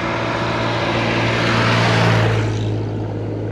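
A tractor engine rumbles loudly as it passes close by.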